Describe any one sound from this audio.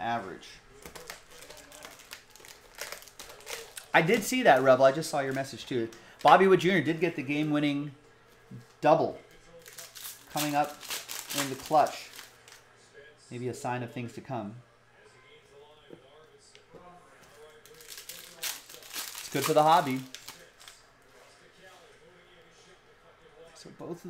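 Foil packs crinkle and rustle as hands handle them.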